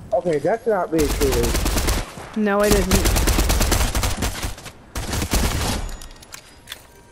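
Rapid gunfire rings out in loud bursts.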